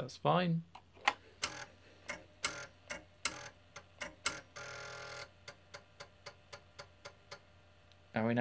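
Short electronic game bleeps sound in quick succession.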